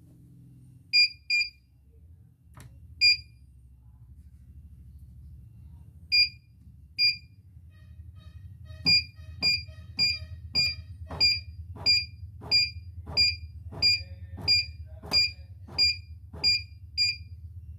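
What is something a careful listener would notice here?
An electronic machine beeps sharply as its buttons are pressed.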